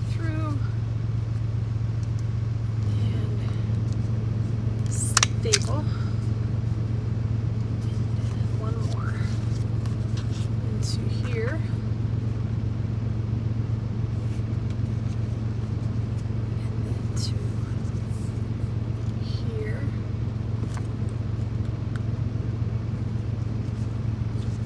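Plastic buttons click softly as they are handled.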